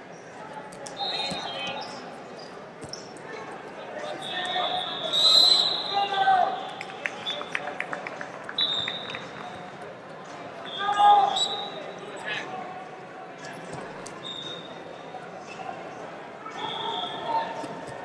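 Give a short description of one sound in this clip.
A referee's whistle blows in short sharp bursts.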